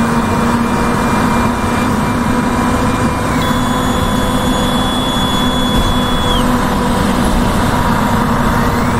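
Tyres roll on a road with a steady rushing noise.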